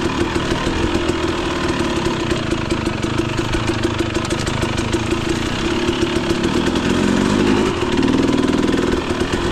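A dirt bike engine putters and revs steadily up close.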